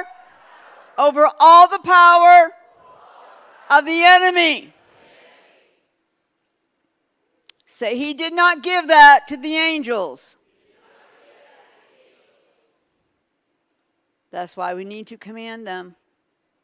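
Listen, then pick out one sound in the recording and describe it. A woman speaks expressively into a microphone, heard through loudspeakers in a large hall, with pauses between phrases.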